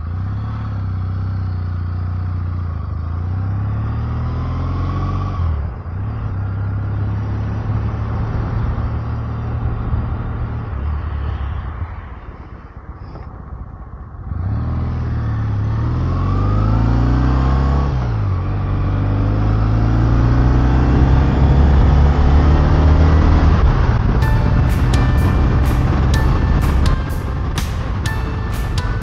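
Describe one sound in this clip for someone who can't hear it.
A motorcycle engine drones steadily, its pitch rising and falling as it shifts gears.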